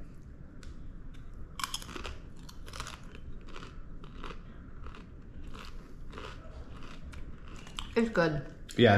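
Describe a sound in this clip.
A woman makes crunching chewing sounds.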